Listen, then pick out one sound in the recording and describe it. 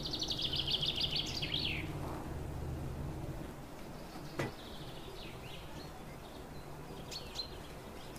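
A hand squishes and mixes a soft, floury dough in a glass bowl.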